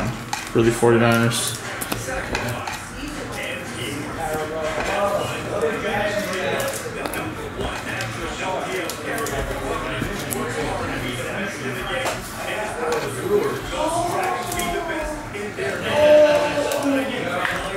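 A plastic card sleeve crinkles as a card slides in.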